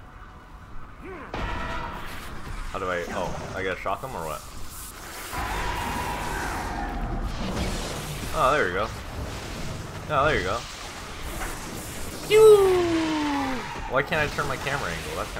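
Magic spells whoosh and hum in a fight.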